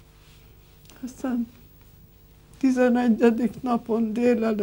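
An elderly woman speaks quietly and slowly, close to a microphone.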